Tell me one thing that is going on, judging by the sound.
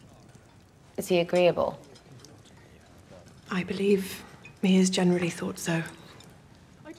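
A young woman speaks softly nearby.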